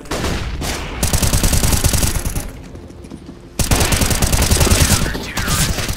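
A rifle fires rapid, loud bursts of shots.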